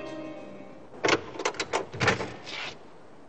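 A metal door handle clicks and a door latch clacks open.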